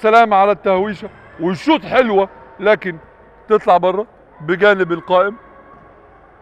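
A young man shouts loudly across an echoing indoor court.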